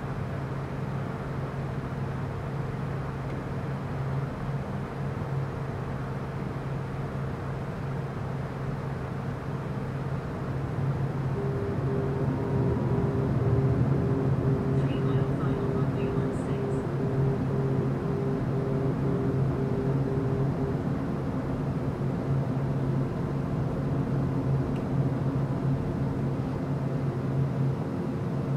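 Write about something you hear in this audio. Jet engines drone steadily and grow louder partway through.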